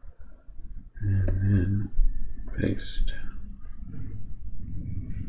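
A man speaks calmly and close to a microphone, as if explaining.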